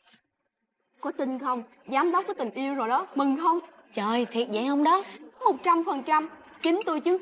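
Young women chat with animation.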